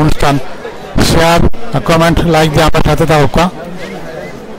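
A man chants loudly close by.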